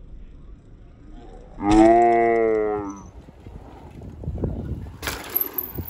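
Bicycle tyres land hard on packed dirt.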